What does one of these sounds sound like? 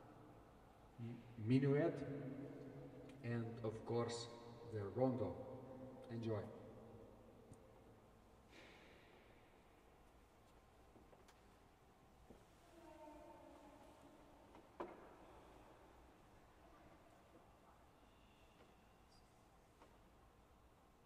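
A pipe organ plays loud chords that ring out and echo in a large hall, then softer notes.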